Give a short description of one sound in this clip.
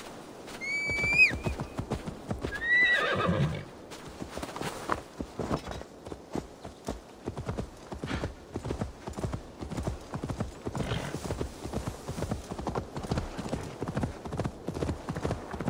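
Horse hooves clop steadily on a dirt path.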